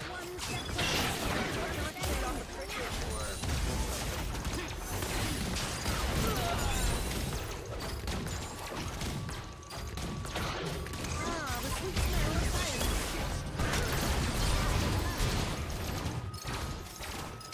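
Game battle effects crackle, whoosh and clash.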